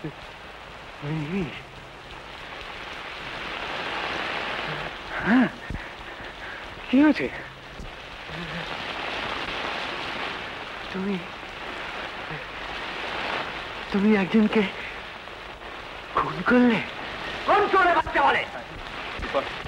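A middle-aged man speaks in fear, in short bursts.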